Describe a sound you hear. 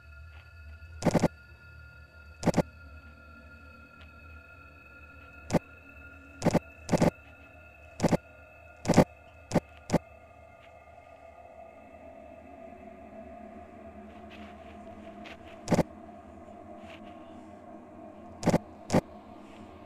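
Short sharp clicks sound now and then as a game menu is tapped.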